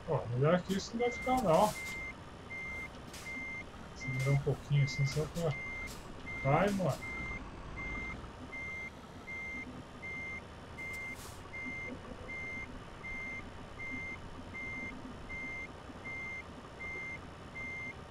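A truck's reversing alarm beeps steadily and repeatedly.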